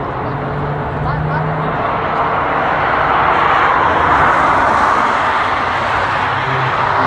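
Tyres roar on the track as a van passes close by.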